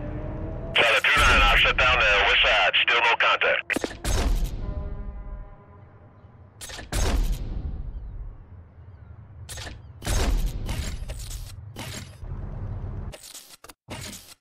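Game menu tones chime and whoosh in short bursts.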